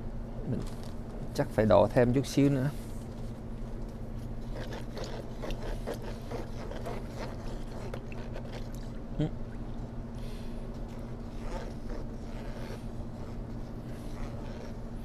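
A wooden paddle stirs and sloshes through thick liquid.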